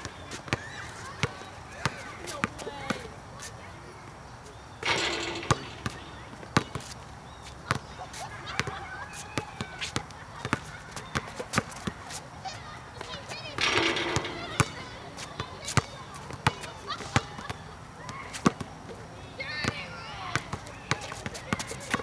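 A basketball bounces rhythmically on an outdoor court.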